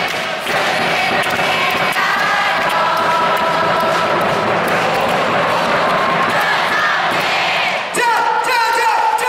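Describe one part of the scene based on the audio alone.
Clappers bang rhythmically in the crowd.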